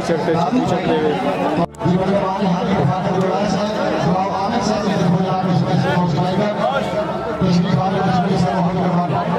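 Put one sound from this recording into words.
A large outdoor crowd shouts and cheers.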